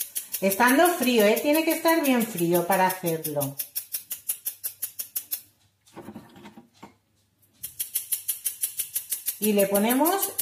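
A spoon taps quickly and steadily against a metal sieve.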